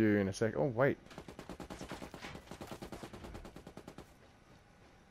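A gun fires in a rapid rattling burst.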